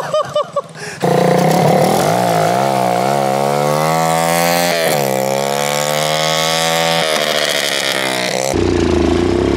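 A small engine revs loudly, its pitch rising and falling.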